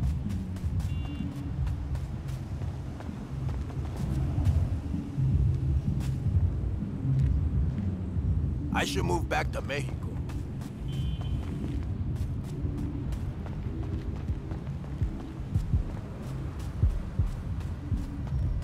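Footsteps hurry across grass and pavement.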